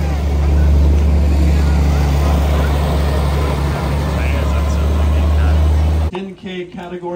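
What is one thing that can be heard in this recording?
A tractor engine rumbles loudly as it drives past.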